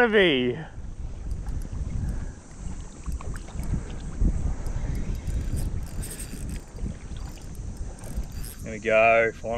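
Water laps and splashes.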